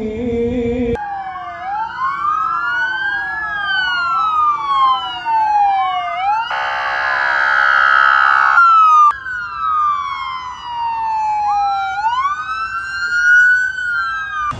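Police sirens wail loudly, rising and falling.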